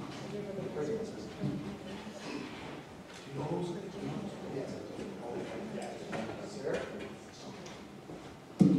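A man talks and laughs with another man near a microphone.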